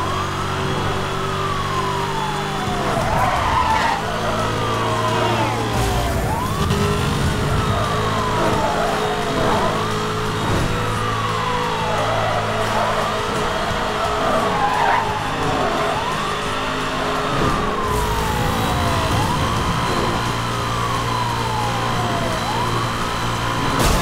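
A siren wails in a rising and falling cycle.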